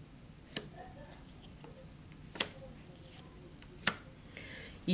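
Cards are shuffled with soft snaps.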